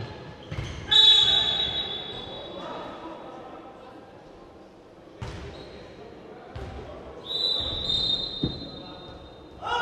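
A referee's whistle blows sharply in a large echoing hall.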